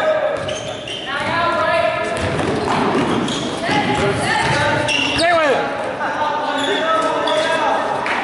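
Sneakers squeak sharply on a gym floor.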